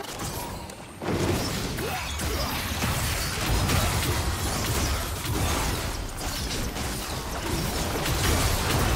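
Magic blasts crackle and boom in a game battle.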